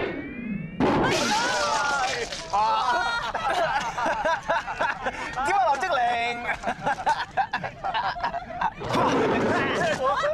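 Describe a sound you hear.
A young man laughs heartily.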